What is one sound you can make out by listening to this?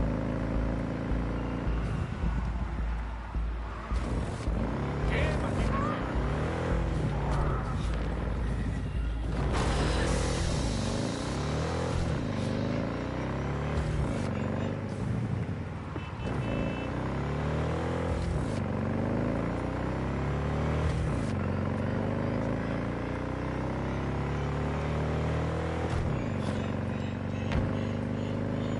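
A motorbike engine revs up and down as gears shift.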